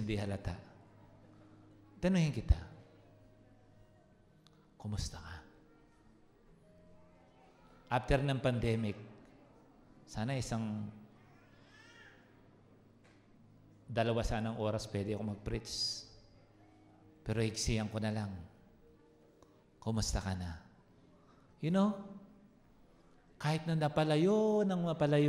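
A man speaks through a microphone over loudspeakers, in short phrases, in a large echoing hall.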